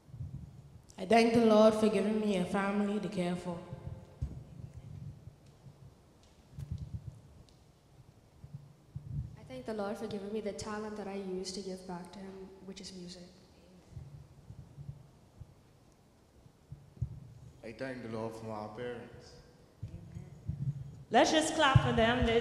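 A woman sings through a microphone in a large echoing hall.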